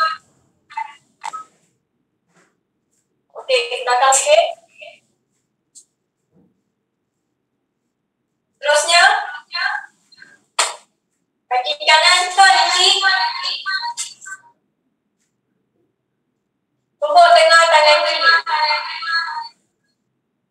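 A young woman speaks with animation, heard through an online call.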